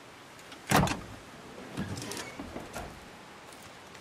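A car hood clunks open.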